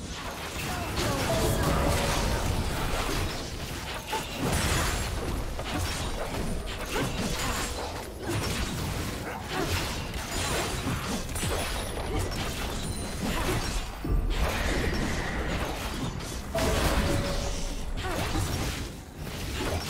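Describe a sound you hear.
Magic spell effects whoosh, burst and crackle during a fast video game battle.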